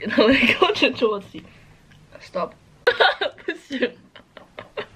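A young woman laughs close by.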